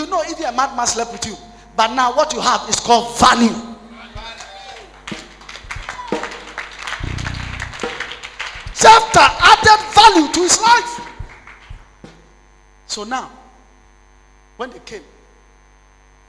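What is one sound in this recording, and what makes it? A man preaches loudly and with passion through a microphone, in an echoing hall.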